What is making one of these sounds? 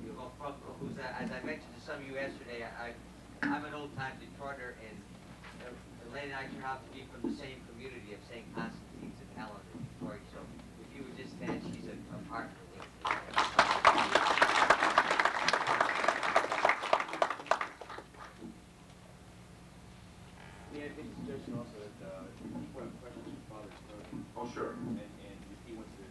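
An elderly man speaks into a microphone to a room, with a slight echo.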